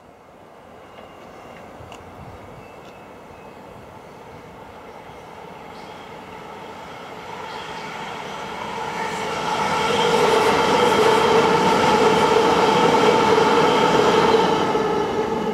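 An electric multiple-unit train approaches and rumbles past close by on the rails.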